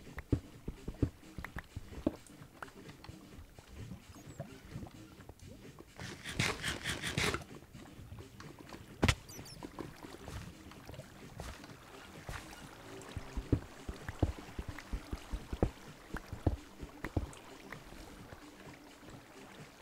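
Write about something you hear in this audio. Footsteps tap on stone at a walking pace.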